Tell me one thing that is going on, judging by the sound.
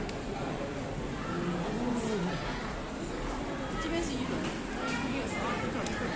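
A crowd of people chatters indistinctly in a large echoing hall.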